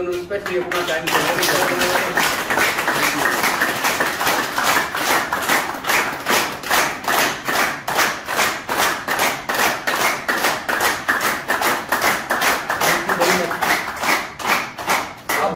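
A group of people clap their hands in a quick, steady rhythm.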